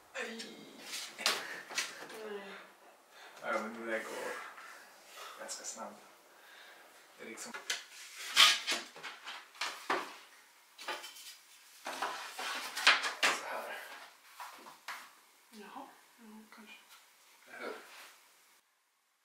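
Hands press and tap on wooden wall boards.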